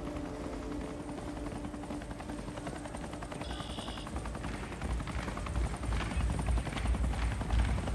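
Footsteps jog steadily on stone paving.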